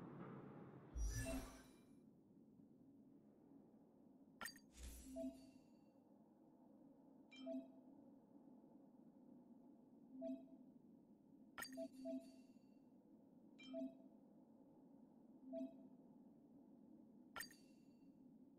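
Soft electronic menu chimes and clicks sound at intervals.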